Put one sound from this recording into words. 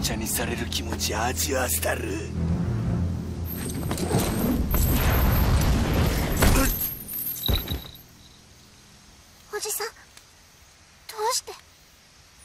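A young girl speaks in a frightened voice.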